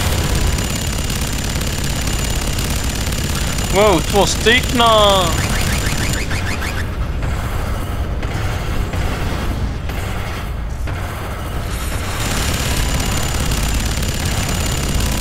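Heavy machine guns fire in rapid bursts.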